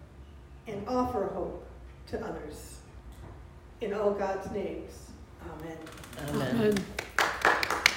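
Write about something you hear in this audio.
An elderly woman speaks calmly through a microphone.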